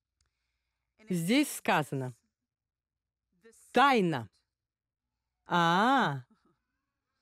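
A middle-aged woman speaks slowly and expressively into a microphone, with long pauses.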